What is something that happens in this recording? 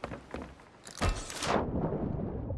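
Water splashes loudly as something plunges into the sea.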